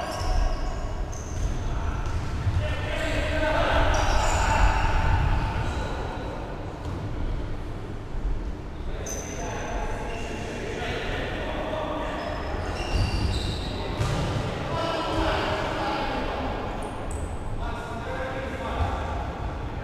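Young men shout to one another in a large echoing hall.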